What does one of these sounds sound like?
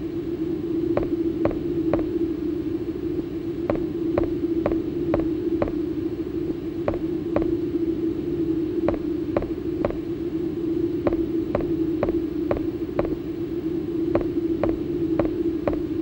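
Footsteps clang on a metal floor at a running pace.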